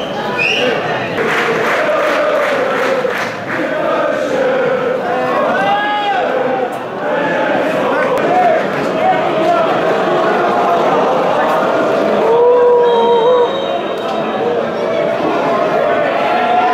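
A crowd of fans chants and shouts loudly in an open stadium.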